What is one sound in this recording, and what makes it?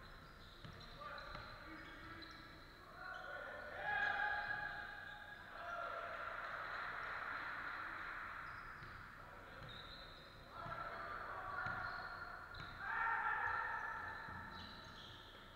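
Sneakers squeak sharply on a court in a large echoing hall.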